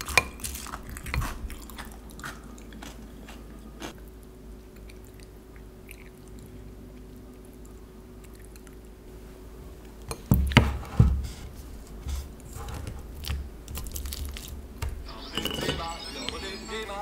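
Crunchy cereal crackles as a spoon stirs it.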